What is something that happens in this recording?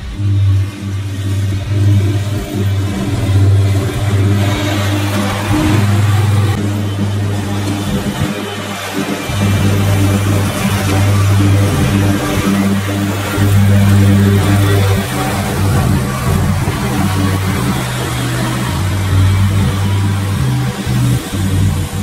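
A mower's blades cut through tall grass with a whirring hiss.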